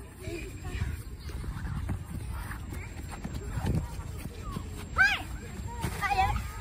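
A ball is kicked on grass.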